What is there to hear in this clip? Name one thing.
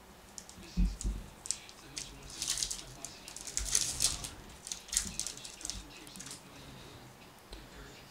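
A foil card wrapper crinkles and tears open.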